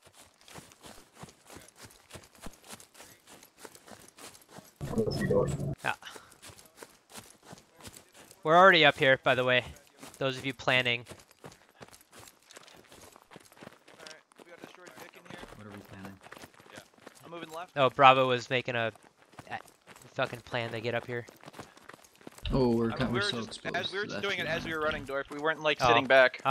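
Footsteps tread steadily over grass and gravel.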